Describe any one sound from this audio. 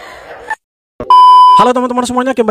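A test tone beeps briefly.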